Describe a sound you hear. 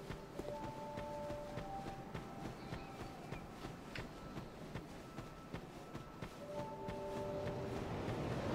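Footsteps thud quickly on dry ground.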